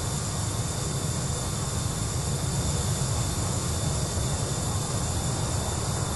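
Aircraft engines roar steadily.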